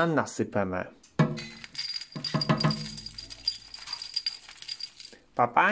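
Dry seeds rattle in a cardboard tub.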